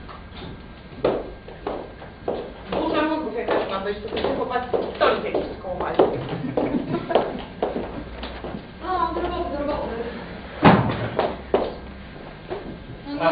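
A woman speaks in a large room.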